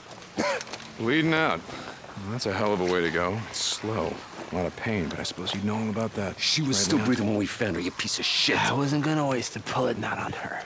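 A man speaks gravely and slowly, close by.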